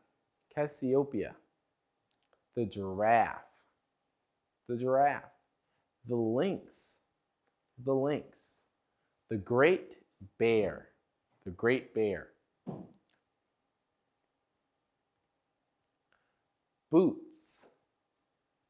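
A young man speaks clearly and calmly into a close microphone, pausing between short phrases.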